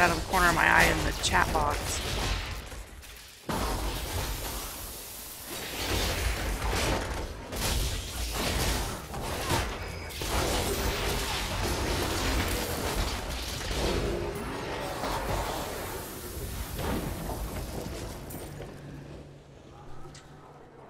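A young woman talks into a headset microphone.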